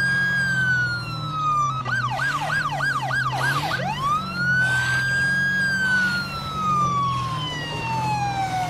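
A police siren wails loudly, switching briefly to a fast yelp.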